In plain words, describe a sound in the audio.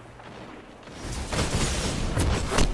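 Gunfire and explosions burst loudly in rapid succession.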